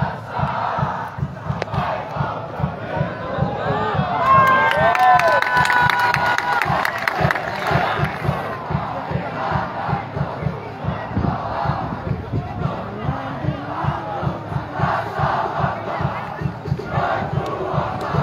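A large crowd of fans chants and cheers in an open stadium.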